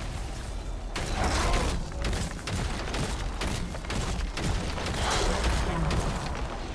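Magic blasts crackle and boom in a fast video game battle.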